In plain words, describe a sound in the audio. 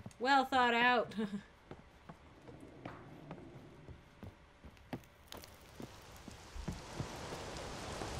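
Footsteps knock on wooden rungs and boards.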